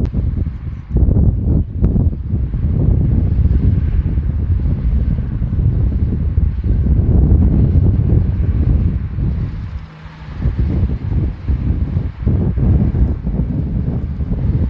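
Heavy military trucks drive across a field with engines rumbling.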